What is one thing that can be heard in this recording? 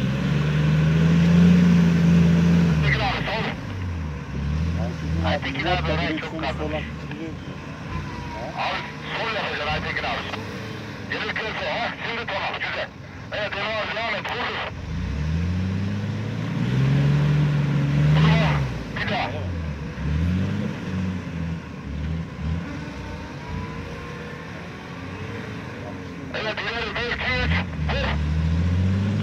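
An engine revs hard and roars, rising and falling.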